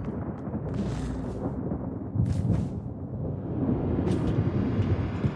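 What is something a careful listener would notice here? Airy whooshes sound as a character leaps through the air.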